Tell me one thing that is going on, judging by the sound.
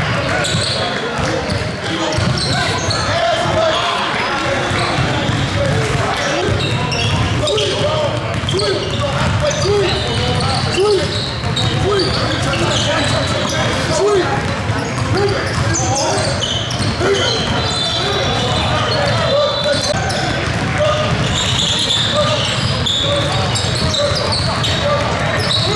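Basketballs bounce repeatedly on a wooden floor in an echoing hall.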